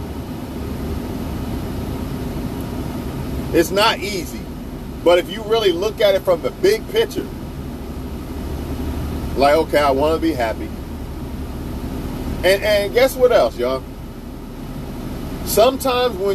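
A vehicle engine hums steadily inside a moving car.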